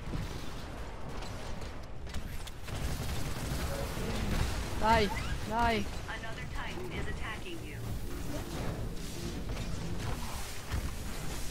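Heavy machine guns fire in rapid bursts.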